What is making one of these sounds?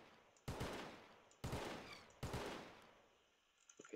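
A rifle fires single loud shots that echo away.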